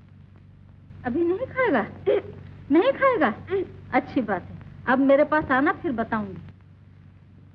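An elderly woman speaks sternly and with animation close by.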